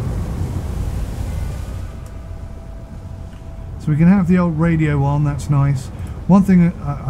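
Sea waves wash softly against a boat's hull.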